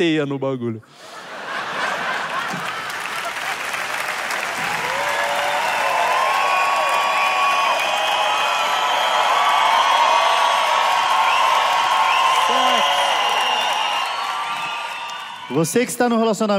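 A large crowd cheers and applauds loudly in a big hall.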